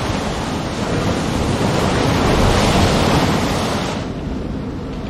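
Stormy sea waves crash and roar loudly.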